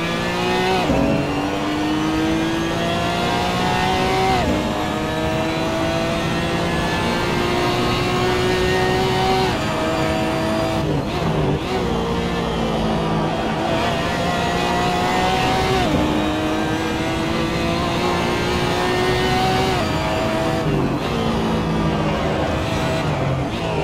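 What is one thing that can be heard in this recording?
A racing car engine roars loudly, climbing in pitch and dropping sharply at each gear change.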